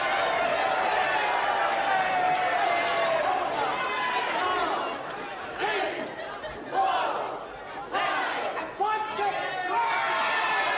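A man counts out loud, calling each number.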